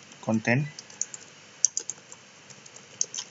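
Keys click as someone types on a keyboard.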